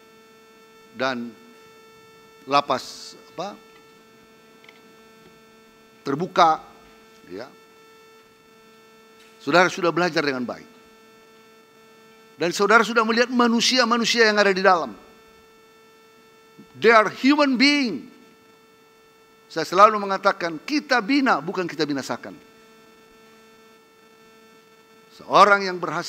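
An elderly man speaks with emphasis and long pauses through a microphone and loudspeakers.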